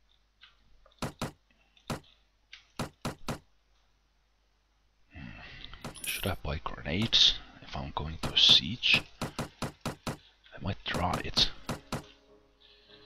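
Short, sharp interface clicks sound one after another.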